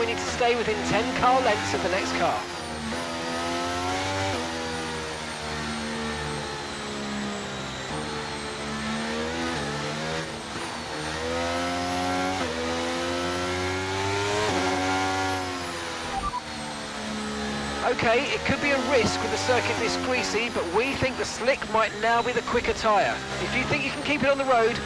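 A racing car engine whines steadily, rising and falling in pitch through the gears.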